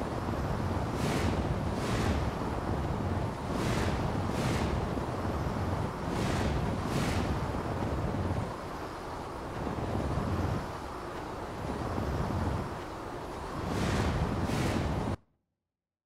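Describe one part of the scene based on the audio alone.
Large wings beat with whooshing gusts.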